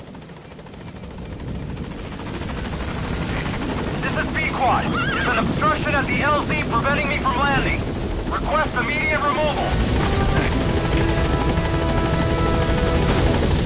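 A helicopter approaches with a rising rotor roar.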